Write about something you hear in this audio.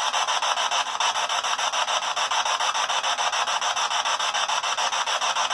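A handheld radio scans rapidly through hissing static in quick, choppy bursts.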